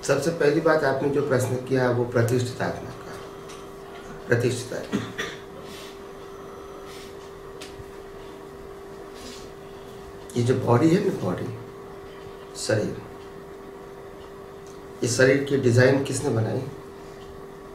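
A middle-aged man speaks calmly and slowly, close to a microphone, with long pauses.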